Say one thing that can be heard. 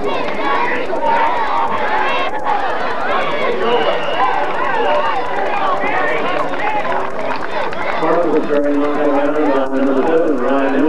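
Young players nearby shout and cheer.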